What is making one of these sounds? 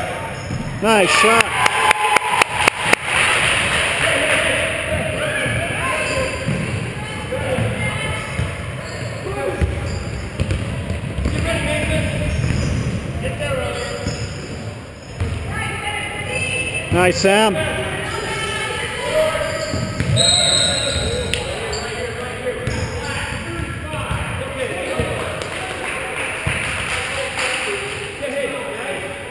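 Voices of players and onlookers chatter and call out throughout a large echoing gym.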